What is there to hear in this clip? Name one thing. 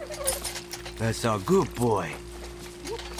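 A dog whimpers close by.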